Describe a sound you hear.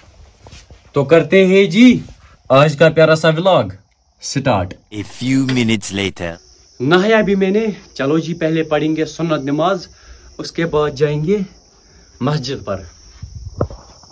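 A young man talks with animation close to a phone microphone.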